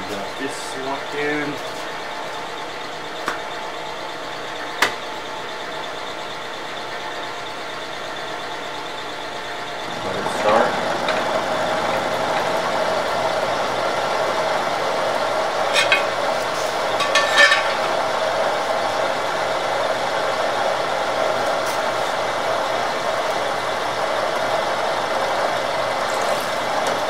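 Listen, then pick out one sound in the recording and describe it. A machine hums steadily, growing louder partway through.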